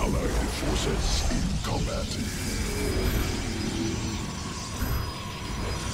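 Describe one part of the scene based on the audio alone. Energy weapons zap and crackle in a busy battle.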